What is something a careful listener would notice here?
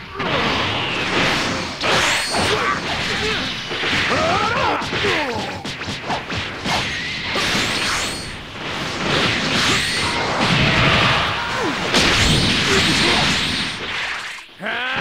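Energy blasts roar and crackle in loud bursts.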